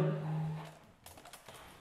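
A saxophone plays a steady held note.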